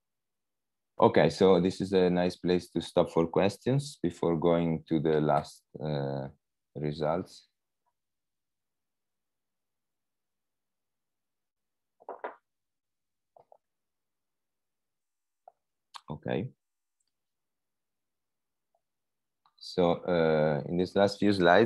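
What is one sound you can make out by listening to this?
A young man speaks calmly over an online call, pausing now and then.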